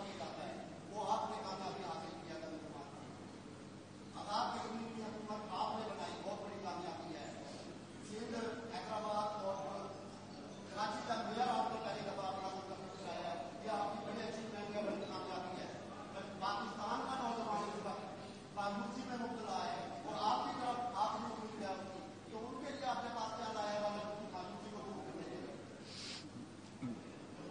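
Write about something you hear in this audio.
A young man speaks calmly into microphones.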